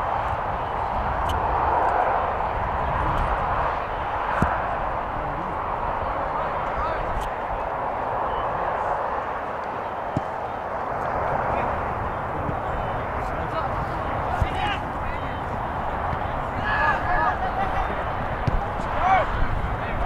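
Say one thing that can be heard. Wind rumbles across an open outdoor field.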